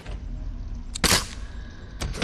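A single gunshot cracks.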